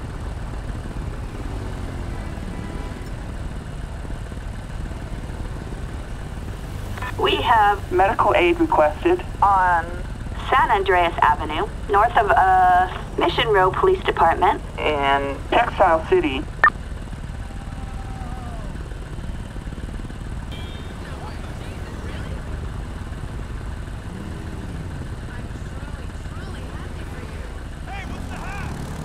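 Motorcycle engines idle with a low, steady rumble.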